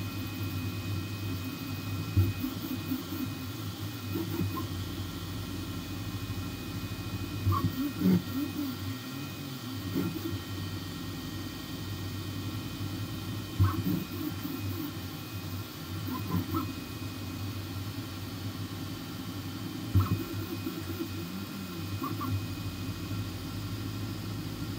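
A machine's motors hum and whir steadily.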